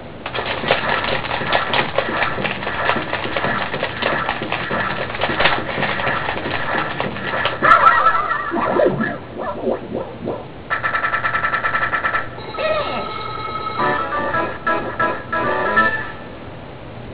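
Upbeat video game music plays through a television speaker.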